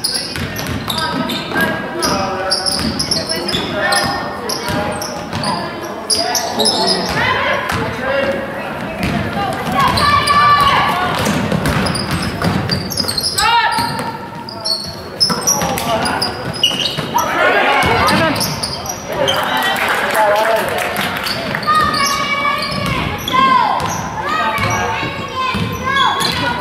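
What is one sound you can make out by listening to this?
Spectators in a large echoing gym shout and cheer.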